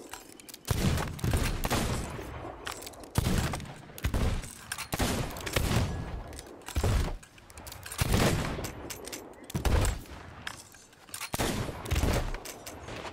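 Guns fire loud booming shots again and again, each echoing briefly.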